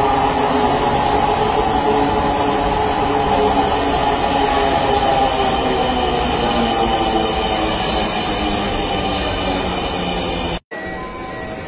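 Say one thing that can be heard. A metro train rolls into a station and slows with a whining hum.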